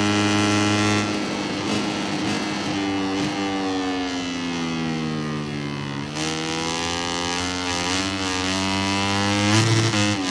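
A motorcycle engine drops in pitch as it slows for a bend, then revs up again.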